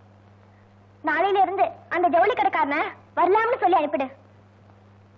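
A young woman speaks loudly and urgently, close by.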